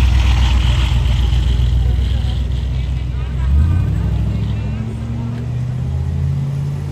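A large engine rumbles deeply as a car pulls away slowly.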